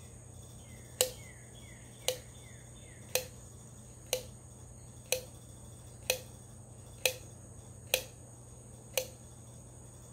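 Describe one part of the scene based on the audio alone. An oil can's pump clicks at a steady pace.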